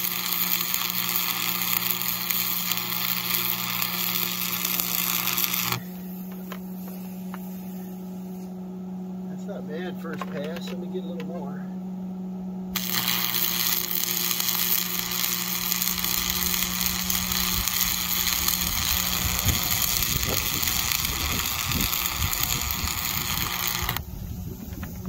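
A welder's arc crackles and hisses steadily.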